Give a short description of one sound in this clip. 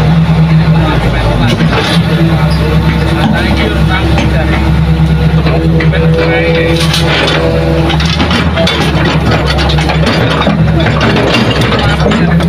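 An excavator's diesel engine rumbles steadily close by.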